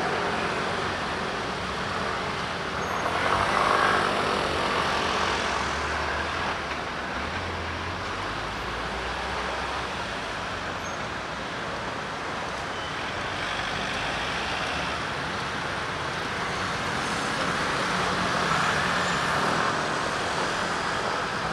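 Steady city traffic rumbles and hums outdoors.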